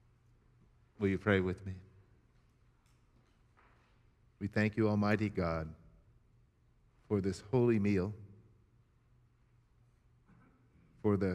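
An elderly man chants slowly through a microphone in a large echoing hall.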